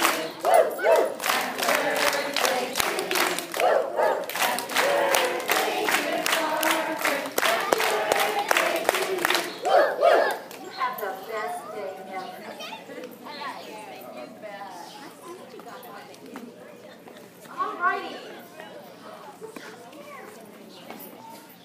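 A woman speaks through a microphone and loudspeaker outdoors.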